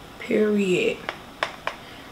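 Paper crinkles as a woman handles a small pack.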